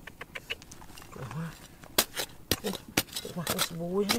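Loose dirt and pebbles tumble and patter down.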